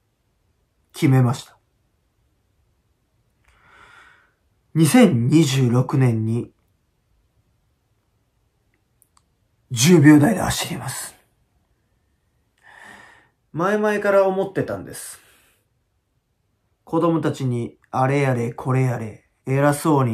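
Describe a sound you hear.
A young man speaks close to the microphone in short, serious bursts with pauses between.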